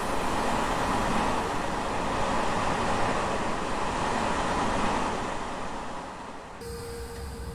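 A passing train rushes by loudly with rolling wheels.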